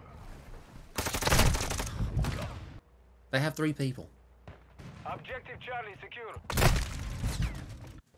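Gunshots boom loudly nearby.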